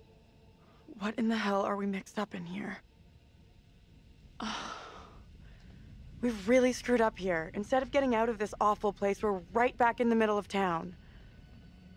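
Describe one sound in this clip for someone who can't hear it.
A young woman speaks in a tense, worried voice close by.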